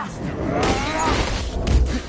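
Heavy blows and impacts thud during a fight.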